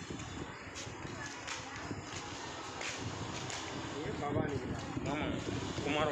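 Bare feet shuffle softly on pavement.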